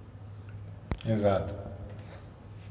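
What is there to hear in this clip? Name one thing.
A man speaks briefly into a nearby microphone.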